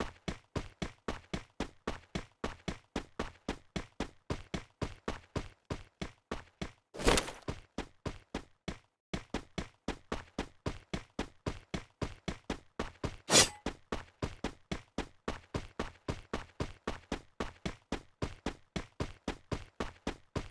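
Footsteps run quickly on concrete.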